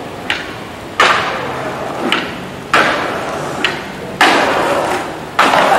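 A skateboard lands hard on concrete steps with loud clacks.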